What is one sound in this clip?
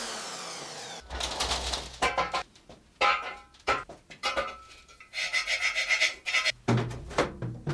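Steel tubes clank and knock together.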